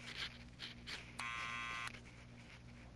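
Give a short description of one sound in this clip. A doorbell buzzes briefly.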